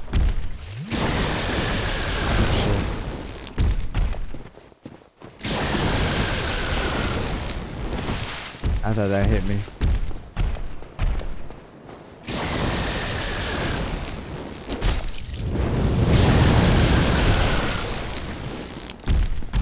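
Lightning crackles and booms in bursts.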